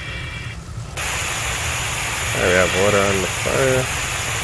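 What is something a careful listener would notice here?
Water sprays hard from a fire hose.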